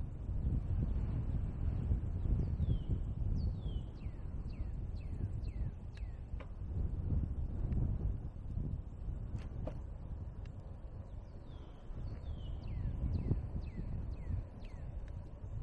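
Tyres roll steadily on a paved path.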